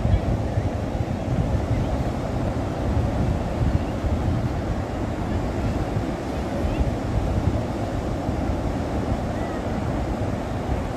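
Sea waves break and wash steadily.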